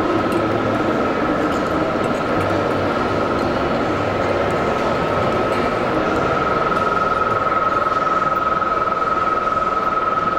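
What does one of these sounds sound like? A dough mixer hums and whirs steadily.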